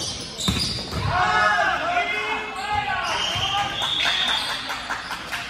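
Players cheer and chatter together in a group.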